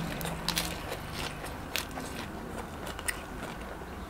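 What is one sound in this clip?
Crisp lettuce crunches as a young man bites into it.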